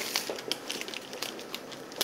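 A knife chops through a bar of chocolate on a board.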